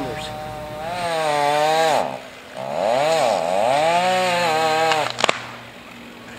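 A chainsaw revs and whines while cutting.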